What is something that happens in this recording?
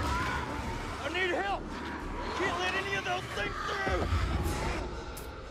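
A man shouts urgently for help nearby.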